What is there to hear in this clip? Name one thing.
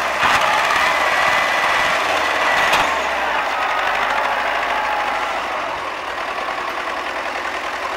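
A loader bucket scrapes and digs through dirt.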